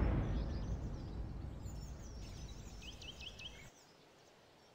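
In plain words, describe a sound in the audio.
A deep explosion rumbles and slowly fades away.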